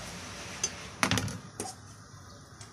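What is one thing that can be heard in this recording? A knife is set down on a plastic tray with a clatter.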